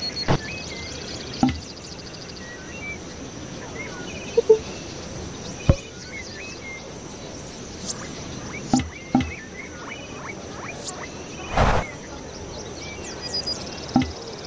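Mouse clicks sound on menu buttons now and then.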